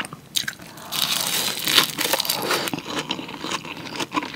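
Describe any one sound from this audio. Crisp roasted seaweed crunches in a young woman's mouth close to a microphone.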